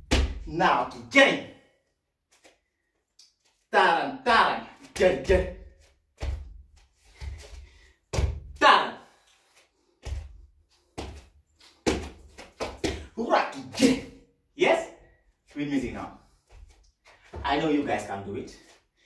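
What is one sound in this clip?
Bare feet thump and stamp on a wooden floor.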